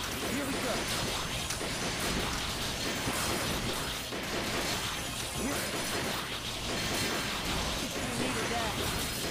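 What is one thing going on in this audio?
Laser blasts zap and crackle rapidly.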